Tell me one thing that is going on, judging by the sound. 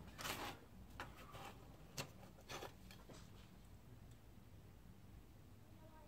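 Plastic parts click softly as a sprue is picked up.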